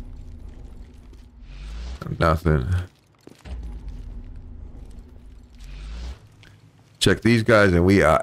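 Footsteps tread on pavement.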